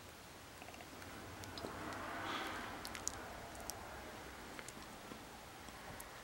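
Liquid swirls and swishes softly inside a glass test tube.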